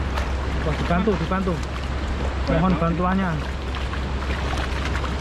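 Fish flap and splash in shallow water.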